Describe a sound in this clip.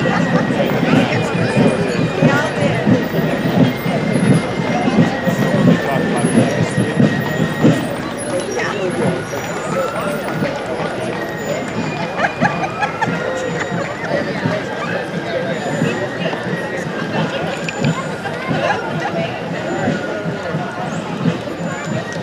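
A fife and drum corps plays a march outdoors.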